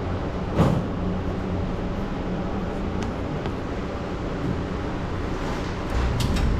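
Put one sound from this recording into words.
A clothes dryer hums and tumbles steadily.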